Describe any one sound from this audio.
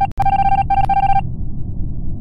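A video game plays a steady high electronic beep.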